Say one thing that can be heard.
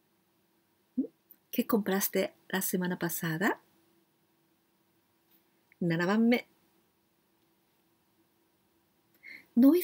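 A middle-aged woman speaks close to a microphone in a lively, friendly voice.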